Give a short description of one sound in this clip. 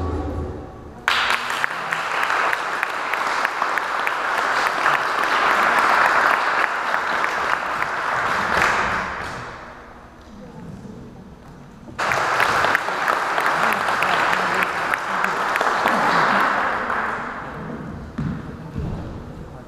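An audience claps and cheers loudly in a large room.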